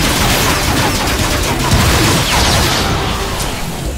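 A blaster-type weapon fires in rapid bursts.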